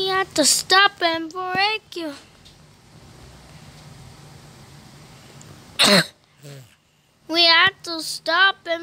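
A young child talks with excitement, close to a microphone.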